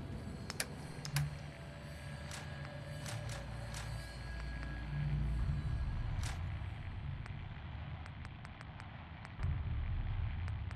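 Short interface clicks tick as menu items are selected one after another.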